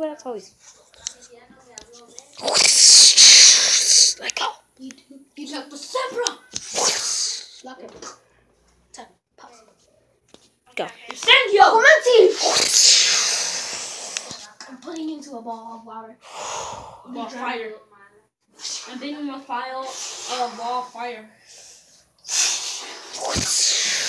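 A boy talks and shouts excitedly nearby.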